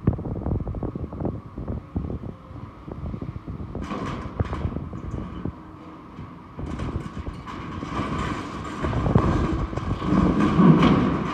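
Metal creaks, scrapes and bangs as an excavator's shears tear at a steel structure.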